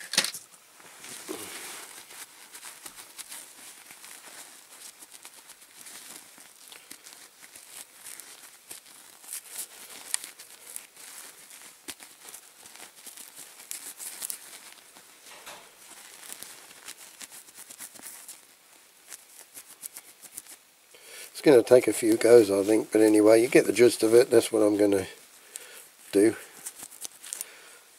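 A soft cloth rubs and polishes a small metal disc.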